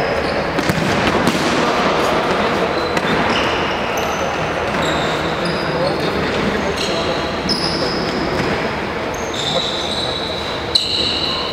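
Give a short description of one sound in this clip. Players' footsteps patter across the floor.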